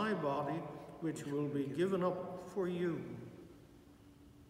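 An elderly man chants a prayer aloud in a softly echoing room.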